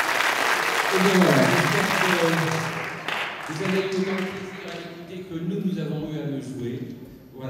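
An elderly man speaks through a microphone and loudspeakers in a large echoing hall.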